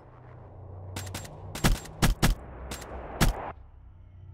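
Several loud gunshots ring out in quick succession.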